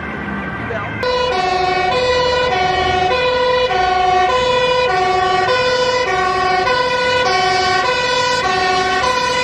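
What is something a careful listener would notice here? A fire engine's two-tone siren blares steadily.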